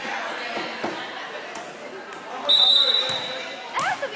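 A volleyball is struck with a hand.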